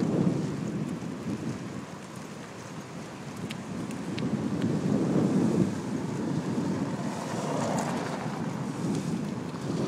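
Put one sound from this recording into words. Wind rumbles steadily against a moving car's window.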